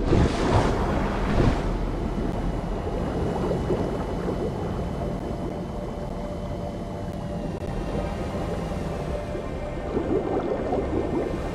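Air bubbles gurgle and rise from a diver underwater.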